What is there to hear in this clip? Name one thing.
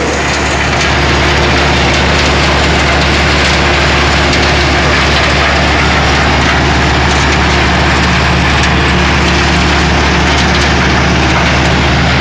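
Wood chips rattle and patter onto a pile.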